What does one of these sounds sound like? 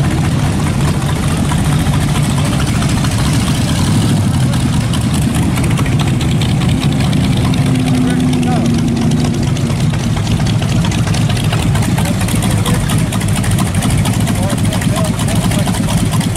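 A classic car engine rumbles deeply as the car rolls slowly past.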